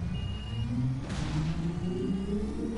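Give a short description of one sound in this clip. A smoke grenade bursts with a loud hiss.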